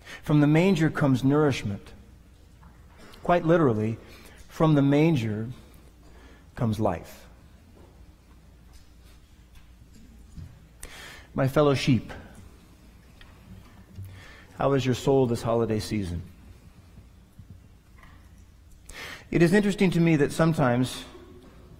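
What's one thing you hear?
A man talks calmly into a microphone, pausing between phrases.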